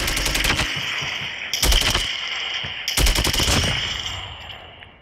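Gunfire cracks in sharp bursts, with a ringing echo.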